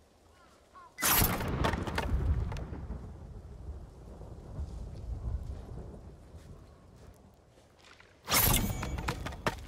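A sword swishes and slices through bamboo stalks.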